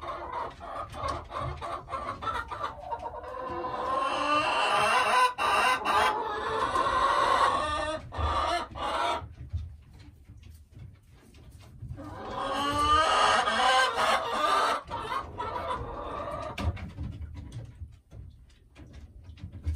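A hen clucks and croons close by, in long rising and falling calls.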